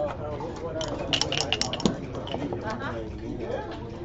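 Dice clatter as they are rolled onto a board.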